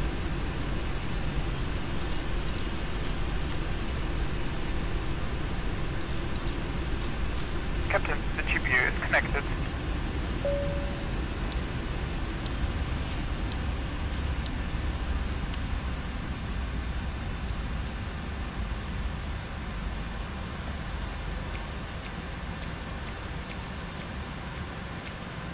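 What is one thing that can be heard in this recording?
A low aircraft engine rumble drones steadily and slowly fades.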